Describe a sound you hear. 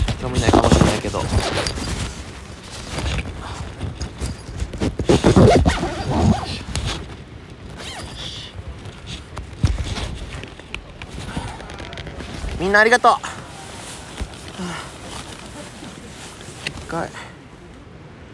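A man talks close to a phone's microphone.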